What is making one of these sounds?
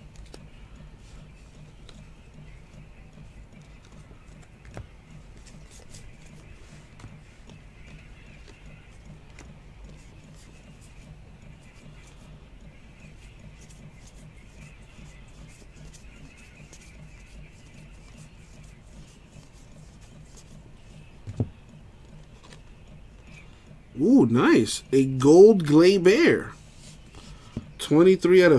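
Trading cards slide and rustle softly between hands.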